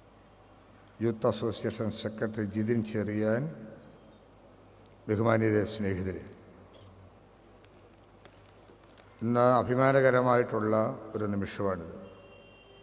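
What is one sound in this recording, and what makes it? A man speaks slowly and formally into a microphone, heard through loudspeakers in a large echoing hall.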